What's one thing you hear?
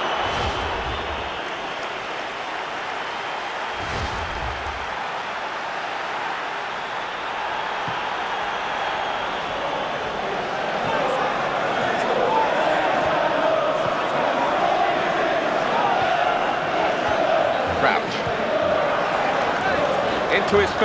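A stadium crowd roars and cheers steadily, swelling louder partway through.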